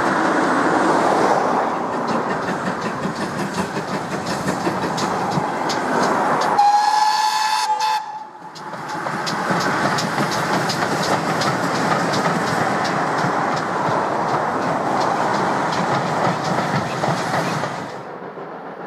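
A steam locomotive chuffs steadily as it hauls a train past.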